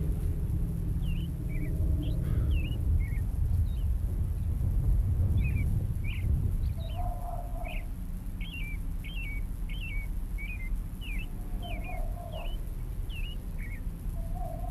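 Small birds chirp in quick bursts.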